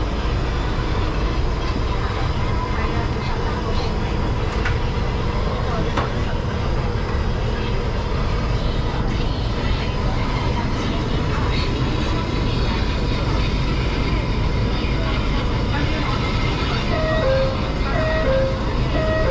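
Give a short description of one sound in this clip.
A tram rumbles and hums steadily while riding.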